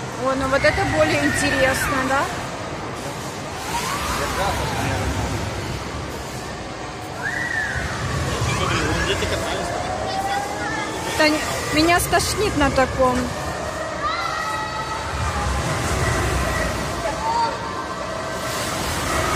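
Riders scream and shout on a spinning ride.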